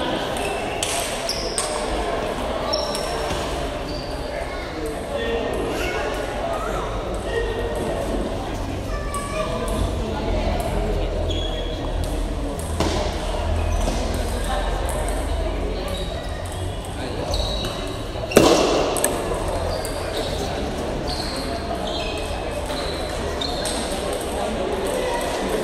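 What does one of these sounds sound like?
A table tennis ball clicks sharply back and forth off paddles and the table.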